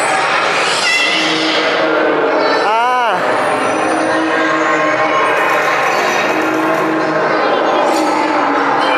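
Children chatter and call out nearby, in a busy echoing space.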